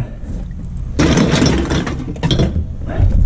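Metal cans clink and rattle together.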